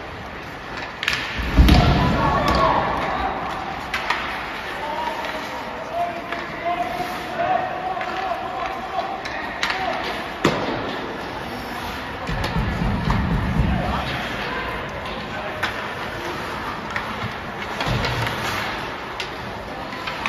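Skate blades scrape and hiss across the ice in a large echoing rink.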